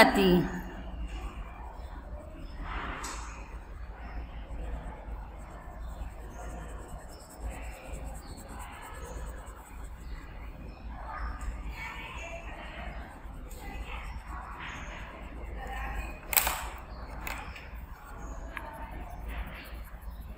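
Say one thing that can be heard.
A crayon scratches and rubs on paper.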